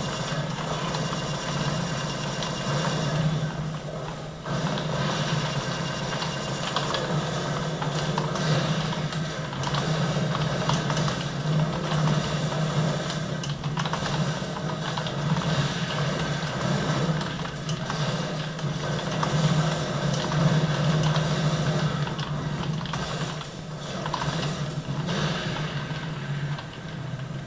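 Keys on a keyboard click and clatter quickly.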